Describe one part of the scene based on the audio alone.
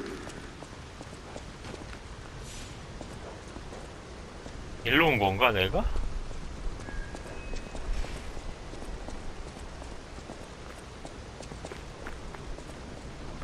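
Footsteps run on stone paving.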